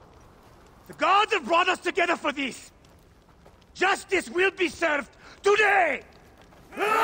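A man speaks firmly and gruffly, close by.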